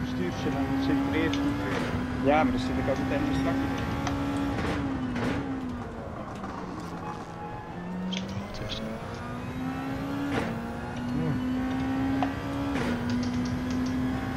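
A racing car engine roars steadily, dropping in pitch as it shifts gears and rising again.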